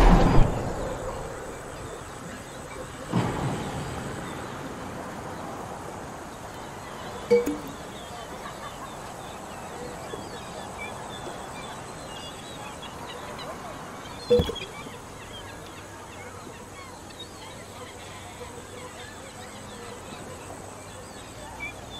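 A glass jar rolls along a wooden beam.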